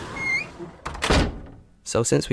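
A door handle clicks.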